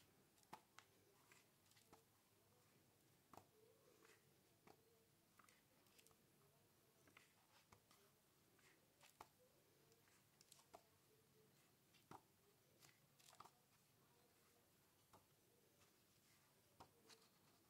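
Paper pages rustle softly as they turn.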